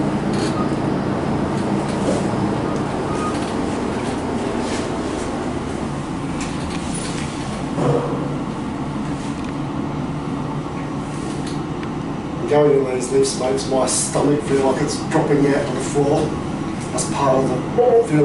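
An elevator hums steadily as it moves.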